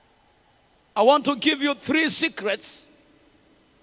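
A young man speaks loudly with animation through a microphone in a large echoing hall.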